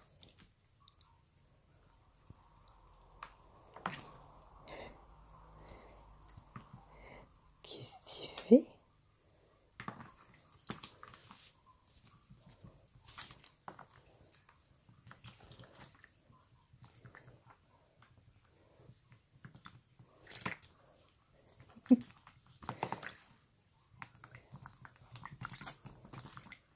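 A parrot splashes and flutters its wings in shallow water.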